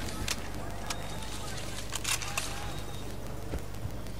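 A rifle magazine is pulled out and clicked back in.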